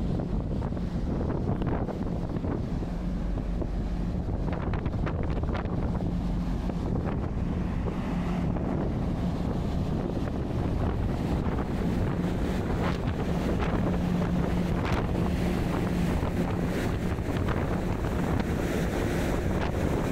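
Wind blows and buffets steadily outdoors.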